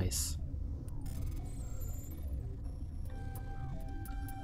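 Soft electronic beeps and chimes sound.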